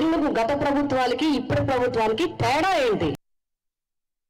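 A woman speaks with animation into a microphone over a loudspeaker.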